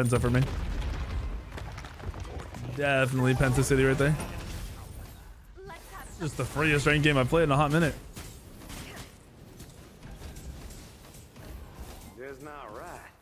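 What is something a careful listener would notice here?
Magic blasts whoosh and crackle in a game.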